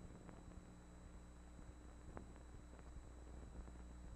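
A cabinet door creaks and clicks open.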